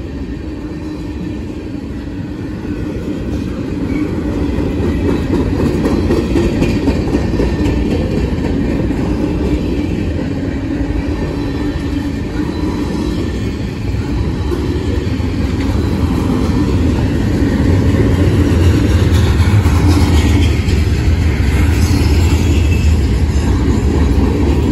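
A long freight train rumbles and clatters steadily past up close.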